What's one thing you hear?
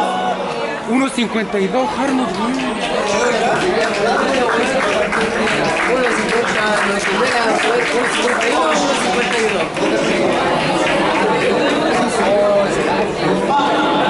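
A crowd of spectators shouts and cheers outdoors in a stadium.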